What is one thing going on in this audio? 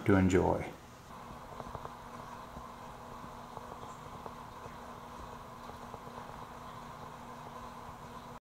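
An aquarium filter hums steadily underwater.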